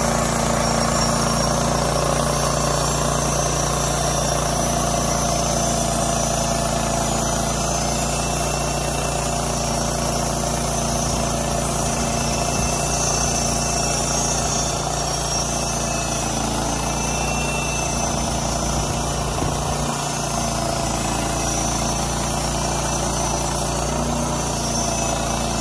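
A band saw blade whines as it cuts through wood.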